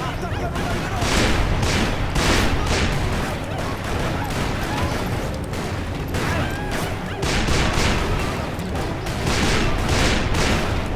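Gunshots fire rapidly, one after another.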